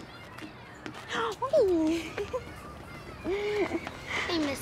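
A young girl laughs happily up close.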